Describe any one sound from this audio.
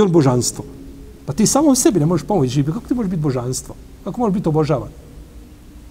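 A middle-aged man speaks calmly and clearly into a microphone.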